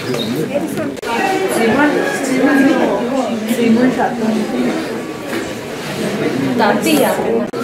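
Several people talk indoors close by.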